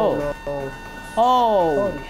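A rooster squawks shrilly.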